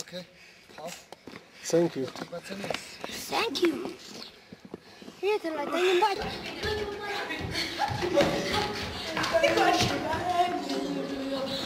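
Young boys laugh and chatter close by.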